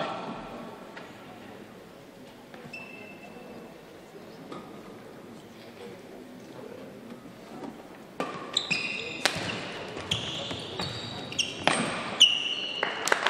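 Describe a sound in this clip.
A racket strikes a shuttlecock with sharp pops back and forth.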